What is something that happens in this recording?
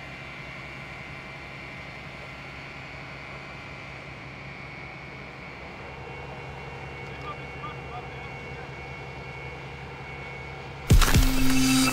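A fire engine's motor hums steadily nearby.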